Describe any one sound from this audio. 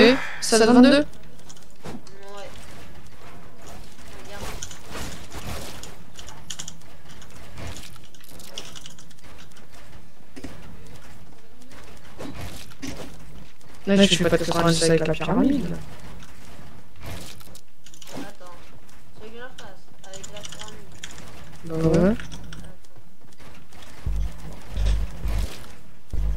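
Keyboard keys click and clatter rapidly.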